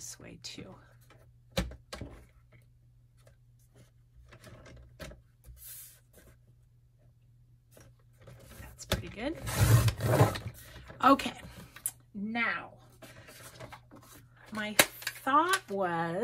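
A paper trimmer blade slides along and slices through paper.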